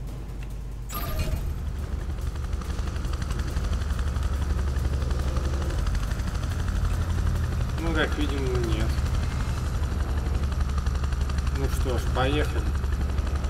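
A helicopter's engine and rotor drone steadily and loudly close by.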